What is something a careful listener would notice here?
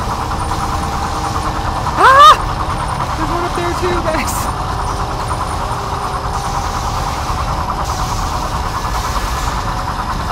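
Spinning saw blades whir with a steady mechanical drone.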